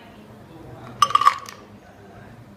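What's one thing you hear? A metal shaker clinks down onto a table.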